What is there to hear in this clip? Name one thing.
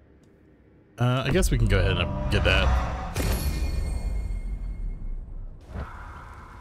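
A loud whooshing game effect sounds as a skill is bought.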